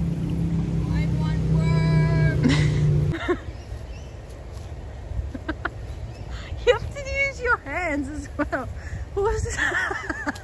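A young girl shouts and calls out excitedly.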